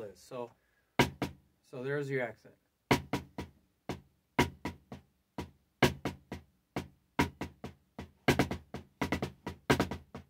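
Drumsticks strike a drum in quick, sharp hits.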